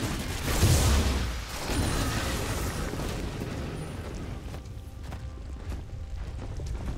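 Game combat effects whoosh and clash.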